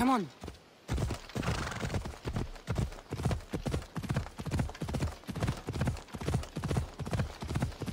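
Horse hooves pound the ground at a steady gallop.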